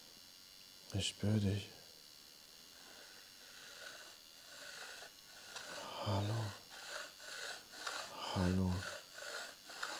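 A man speaks in short, calm bursts close by.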